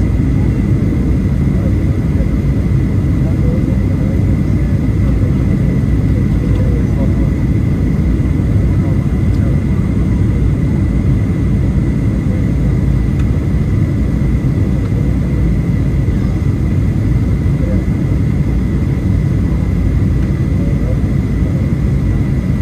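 A jet engine's high steady whine hums over the roar.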